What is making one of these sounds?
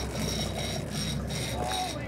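A dolphin exhales with a puff as it surfaces nearby.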